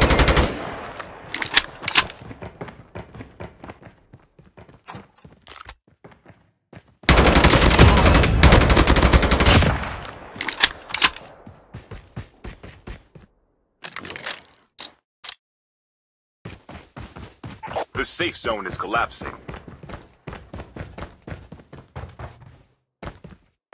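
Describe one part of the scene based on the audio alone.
Footsteps crunch steadily on the ground.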